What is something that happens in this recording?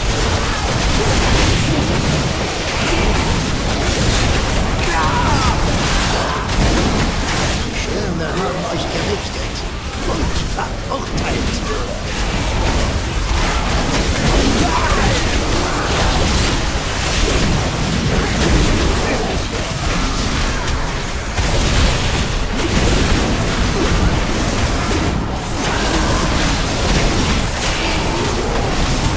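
Spell effects crackle and boom in a busy game battle.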